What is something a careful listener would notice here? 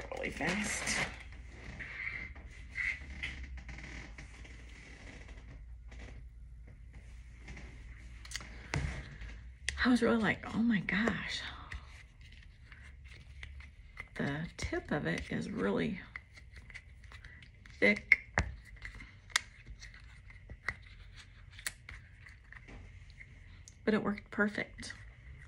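A middle-aged woman talks calmly and close by.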